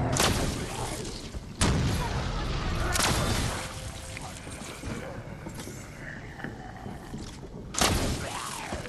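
Gunshots fire in loud single bursts.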